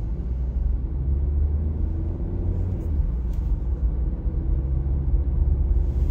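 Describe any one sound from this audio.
A car engine rumbles low and steady from inside the moving car.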